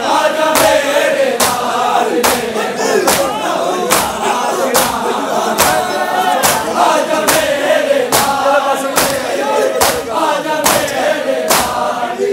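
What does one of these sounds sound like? A crowd of men chants loudly together in an open space.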